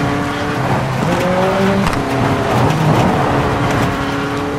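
Tyres skid and crunch over loose dirt.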